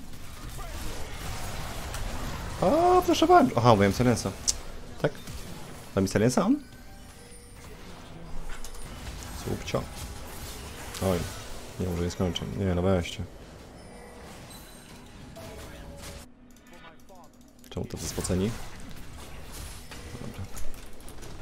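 Video game effects whoosh and clash.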